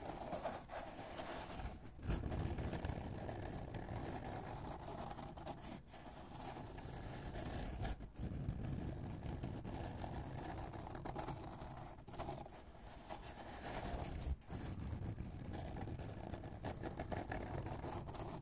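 Fingernails tap and scratch on cardboard, close up.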